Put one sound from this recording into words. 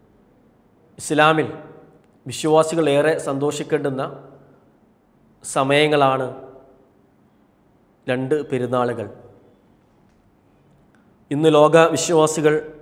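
A young man speaks calmly and clearly into a close microphone, in short phrases with pauses.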